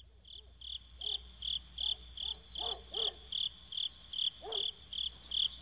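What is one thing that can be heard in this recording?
Swans call softly over water.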